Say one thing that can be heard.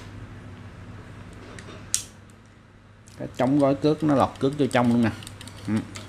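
A fishing reel clicks and rattles as hands handle it.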